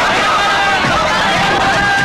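A crowd of people shouts and clamours.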